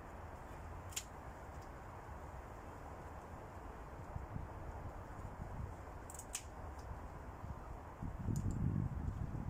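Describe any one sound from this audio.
Pruning shears snip through thin branches.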